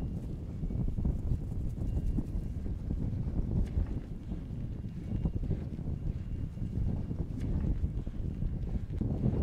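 Sheep tear and munch grass close by.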